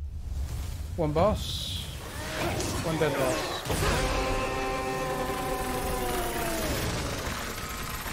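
Energy beams crackle and zap in bursts.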